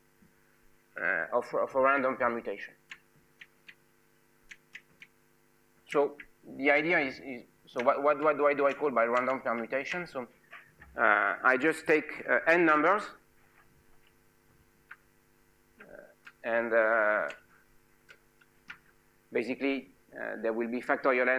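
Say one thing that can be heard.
A man speaks calmly in a lecture, heard through a microphone in a large room.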